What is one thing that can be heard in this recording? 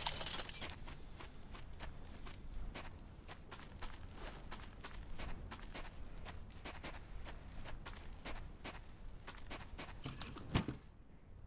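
Footsteps crunch over loose rubble at a steady walking pace.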